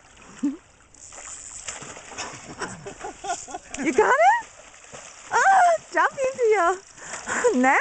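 A fish splashes and thrashes in shallow water.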